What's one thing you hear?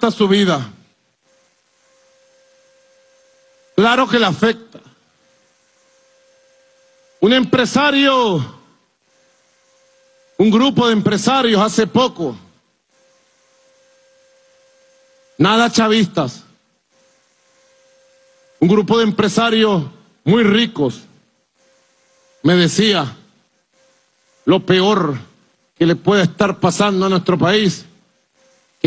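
A man speaks forcefully through a microphone and loudspeakers, in short bursts with pauses.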